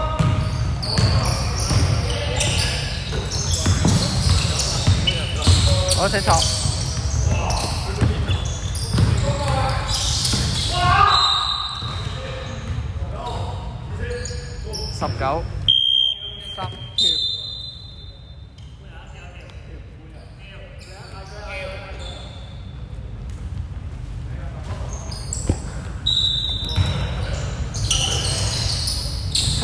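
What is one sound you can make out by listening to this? Sneakers squeak sharply on a hard court in an echoing gym.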